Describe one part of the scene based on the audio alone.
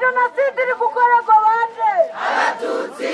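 A young voice sings out a loud, melodic call.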